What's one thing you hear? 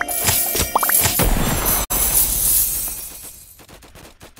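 Coins jingle and chime in a bright burst.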